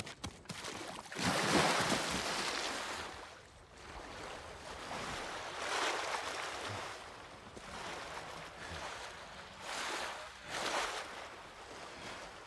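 Water splashes and sloshes as someone wades through a pond.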